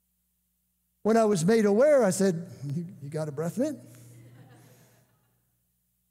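An elderly man speaks with animation into a microphone in a large echoing room.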